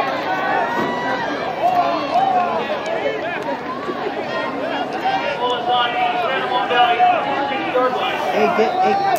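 A crowd of spectators cheers and shouts outdoors with many overlapping voices.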